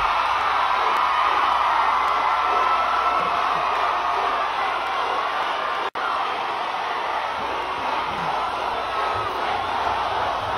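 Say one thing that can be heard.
A large crowd cheers and sings loudly outdoors.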